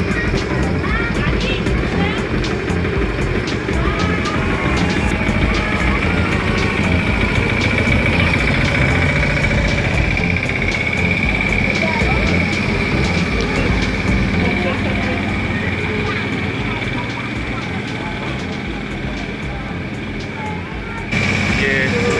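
A crowd of adults and children chatter nearby.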